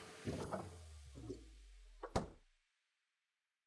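A vending machine hums steadily, then stops.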